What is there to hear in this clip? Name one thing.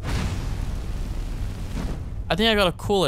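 A magic spell hisses and roars.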